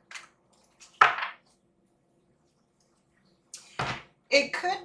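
Cards slide and slap on a table.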